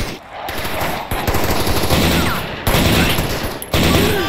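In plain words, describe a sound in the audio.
An assault rifle fires several shots.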